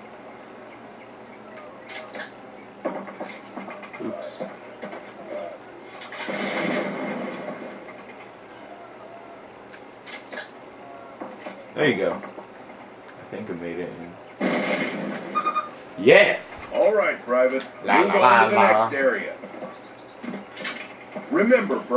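Sound effects from a war video game play through a television speaker.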